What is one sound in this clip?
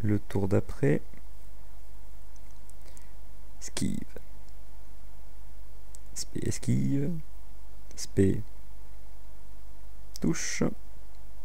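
A young man speaks in short bursts into a close microphone.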